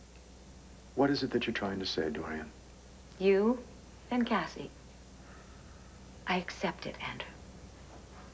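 A woman speaks calmly and quietly, close by.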